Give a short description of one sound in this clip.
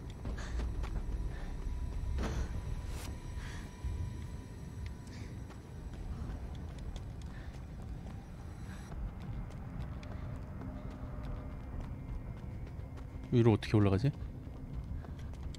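Footsteps tread softly on pavement.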